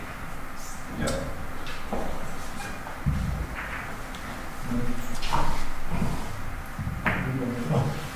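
Billiard balls click sharply against each other on a table.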